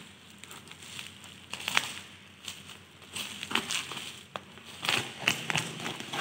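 Scissors snip through plastic bubble wrap.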